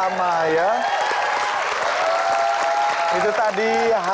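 People clap their hands.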